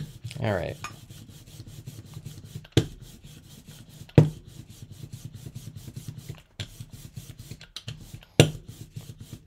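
A brayer rolls back and forth over paper with a soft rumbling.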